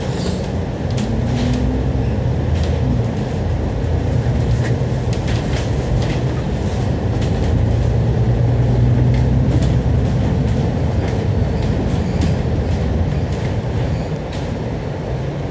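A diesel double-decker bus engine drones, heard from on board while the bus drives along.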